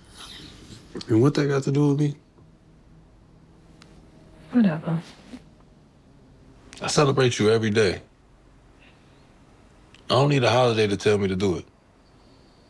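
A man speaks calmly and quietly, close by, in short bursts.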